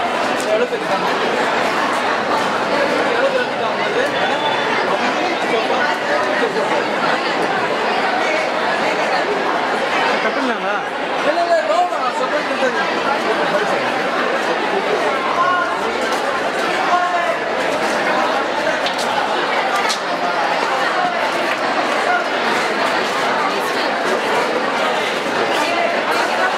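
A crowd of men and women chatter nearby, several voices overlapping.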